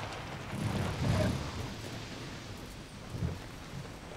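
A car engine idles softly.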